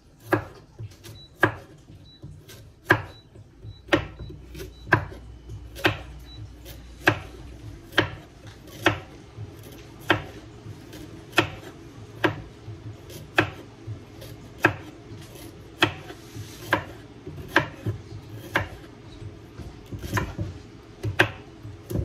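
A chef's knife chops vegetables on a wooden cutting board.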